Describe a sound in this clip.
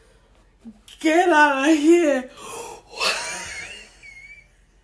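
A woman laughs excitedly.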